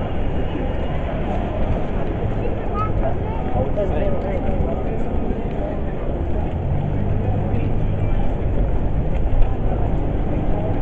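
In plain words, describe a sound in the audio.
Wind rumbles loudly against the microphone outdoors.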